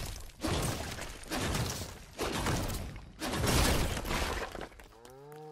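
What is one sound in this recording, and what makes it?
A pickaxe strikes rock with heavy crunching blows.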